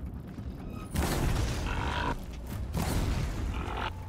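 A fiery explosion bursts with a loud boom.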